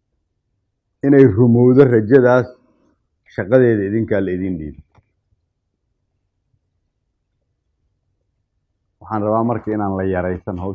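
A man speaks calmly and clearly, in short phrases with pauses.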